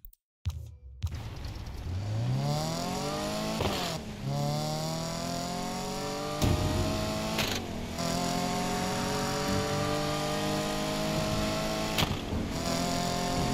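A sports car engine revs up hard and roars through gear changes.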